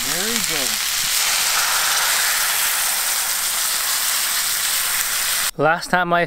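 Meat sizzles loudly in a hot pan.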